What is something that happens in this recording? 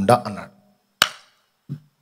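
A man claps his hands once.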